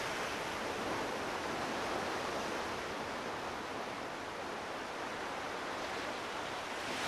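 Waves wash steadily onto a shore.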